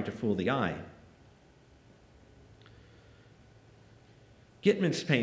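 A man speaks calmly through a microphone in a large hall, pausing between phrases.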